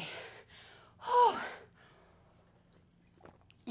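A young woman gulps a drink.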